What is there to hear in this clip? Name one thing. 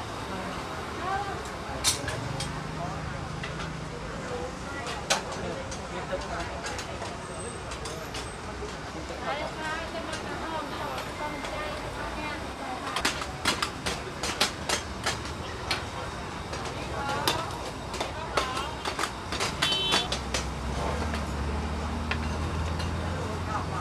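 Metal dishes and utensils clink and clatter.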